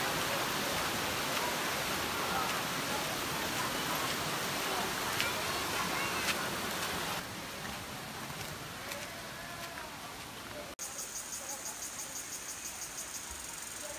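Water rushes steadily over rocks nearby.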